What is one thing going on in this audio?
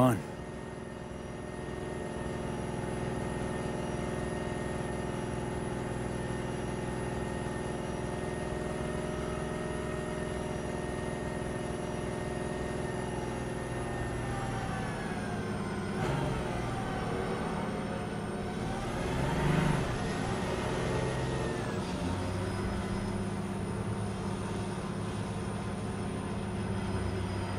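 A vehicle engine hums steadily from inside the cab.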